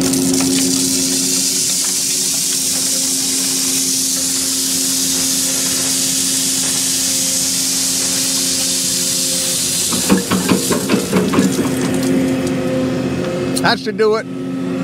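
A heavy machine's engine hums steadily nearby.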